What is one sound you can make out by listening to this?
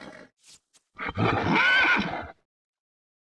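A horse neighs.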